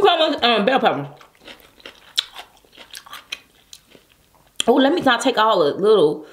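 Hands squish and squelch through a thick wet sauce.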